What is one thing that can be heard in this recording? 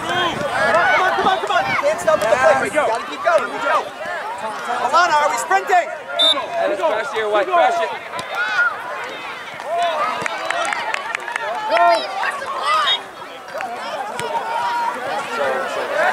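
A crowd of spectators talks and shouts close by outdoors.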